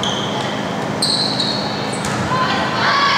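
A volleyball is struck by a player's hand.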